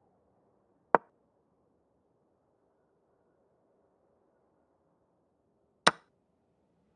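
A chess move click sounds sharply, twice.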